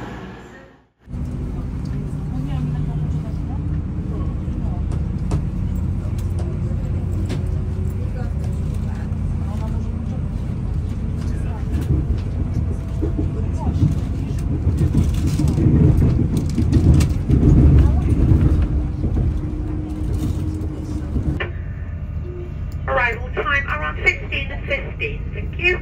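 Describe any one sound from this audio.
A train rumbles steadily from inside a moving carriage.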